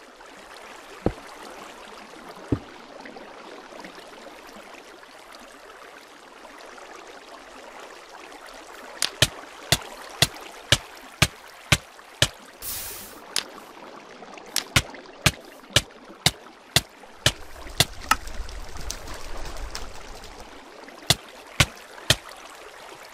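Blocks are placed with sharp, quick knocks.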